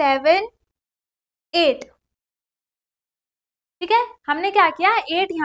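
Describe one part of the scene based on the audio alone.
A young woman speaks clearly and with animation into a close microphone.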